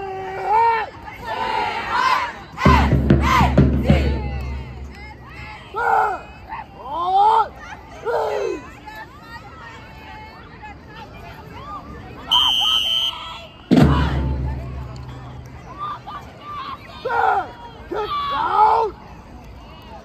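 Young women call out loudly in chanted bursts outdoors.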